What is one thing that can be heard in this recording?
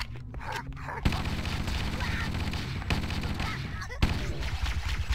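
A weapon fires in quick bursts.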